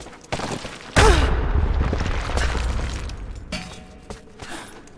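Stone blocks crumble and crash down with a rumble.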